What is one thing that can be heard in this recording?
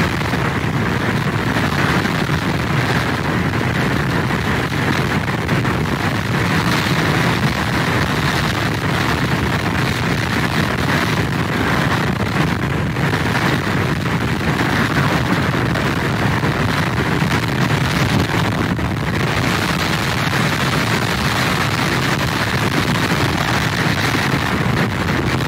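Strong wind rushes and buffets outdoors.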